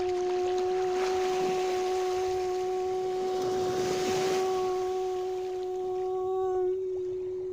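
Gentle waves lap softly in shallow water.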